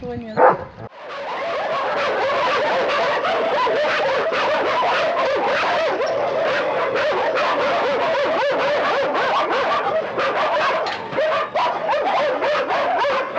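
Many dogs bark and howl loudly all at once.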